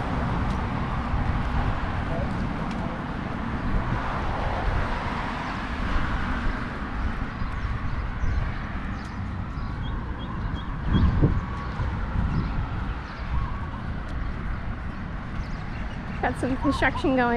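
Wind gusts and rumbles steadily outdoors.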